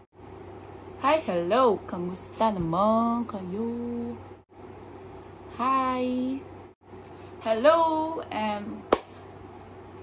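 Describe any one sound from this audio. A young woman talks close to the microphone with animation.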